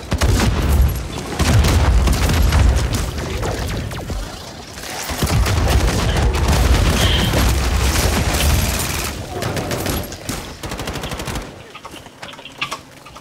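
Gunfire and explosions boom in rapid bursts.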